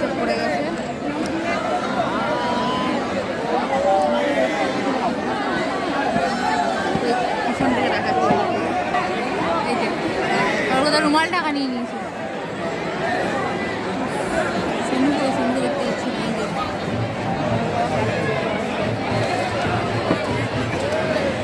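A large crowd chatters loudly all around outdoors.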